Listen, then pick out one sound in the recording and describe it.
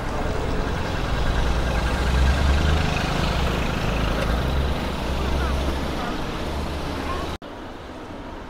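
Wind rumbles loudly against a moving scooter.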